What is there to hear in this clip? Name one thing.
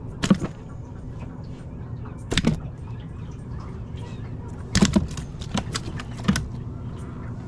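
Fish flop and thump against the sides of a plastic cooler.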